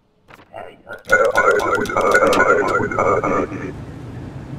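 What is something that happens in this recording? A metal shutter rattles down and slams shut.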